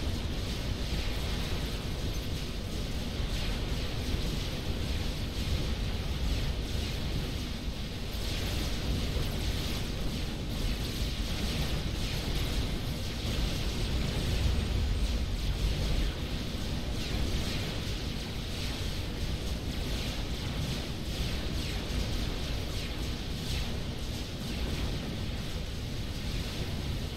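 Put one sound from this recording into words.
Laser weapons fire in rapid bursts amid a battle.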